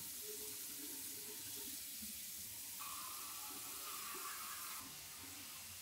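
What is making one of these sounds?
Water runs from a tap.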